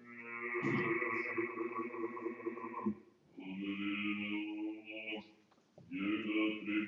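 Several men chant together in a slow, sung tone in an echoing hall.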